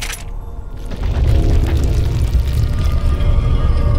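Heavy stone doors grind open with a deep rumble.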